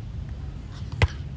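A hand strikes a volleyball with a sharp smack.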